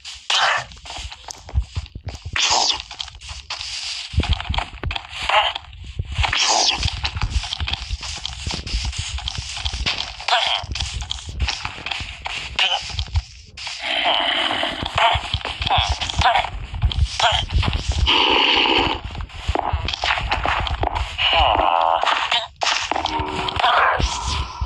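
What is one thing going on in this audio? Soft footsteps patter on grass.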